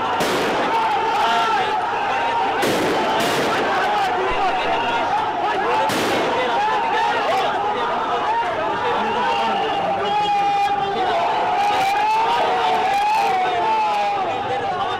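A crowd of men shouts and clamours close by, outdoors.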